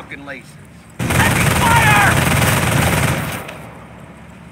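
Heavy gunfire and explosions roar in a loud burst.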